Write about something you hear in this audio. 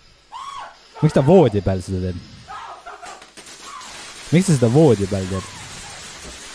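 A young man shouts in alarm close by.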